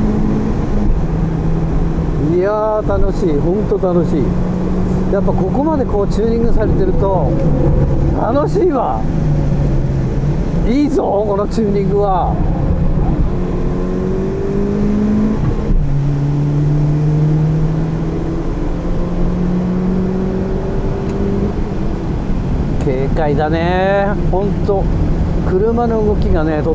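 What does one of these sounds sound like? A car engine drones loudly from inside the cabin, its pitch rising and dropping with gear changes.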